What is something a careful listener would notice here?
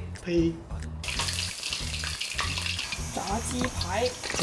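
Hot oil sizzles in a wok.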